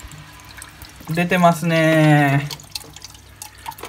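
Water pours and splashes into a tank.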